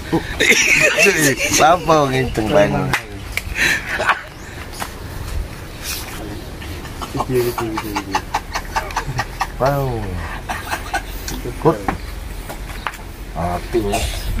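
A middle-aged man talks and laughs with animation close by.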